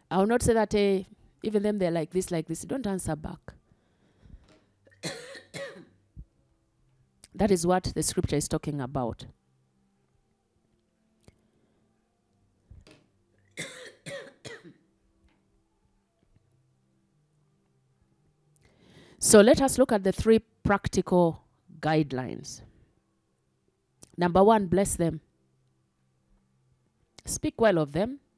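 A woman speaks calmly into a microphone, close by, with pauses.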